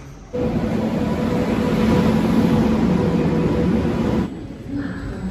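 A train engine rumbles and hums loudly as it passes close by.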